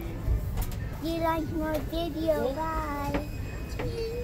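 A young child speaks in a high voice close by.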